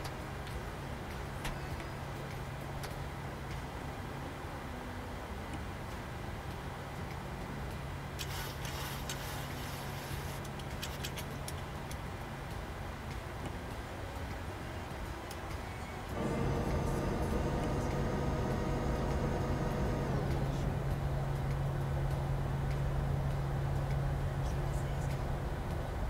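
Jet engines hum steadily at idle, growing louder partway through.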